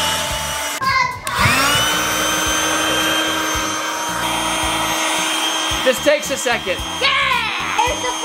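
An electric air pump whirs steadily.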